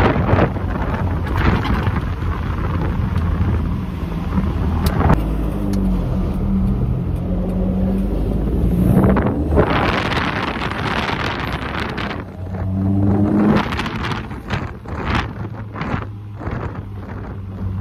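A Datsun pickup's four-cylinder petrol engine runs as the truck drives along.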